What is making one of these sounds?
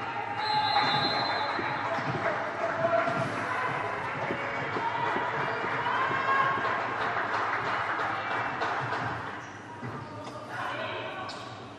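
A volleyball thumps as it is served and hit.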